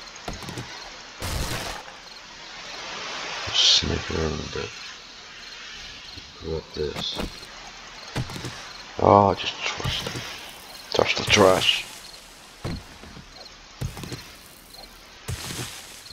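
A stone axe thuds repeatedly against wood.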